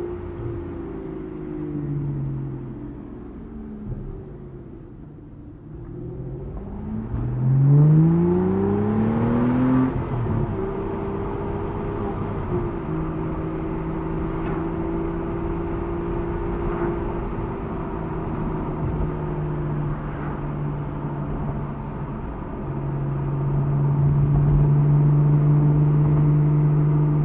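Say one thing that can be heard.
Tyres roll over a road with wind rushing past an open car.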